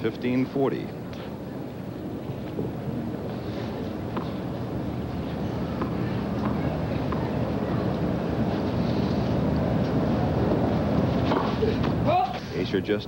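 A crowd murmurs in a large open arena.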